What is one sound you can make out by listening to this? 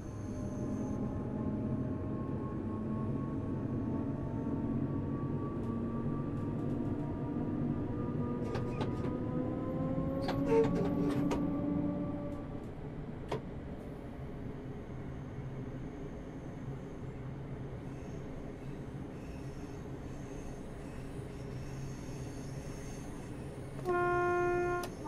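A train's electric motors hum steadily as it rolls along the track.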